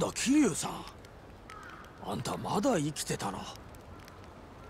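A young man speaks casually and with surprise.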